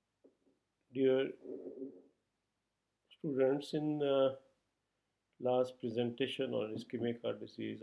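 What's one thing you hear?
A middle-aged man speaks calmly into a close microphone, pausing between phrases.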